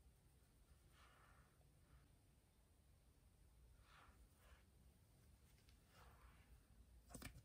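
A makeup brush softly brushes against skin.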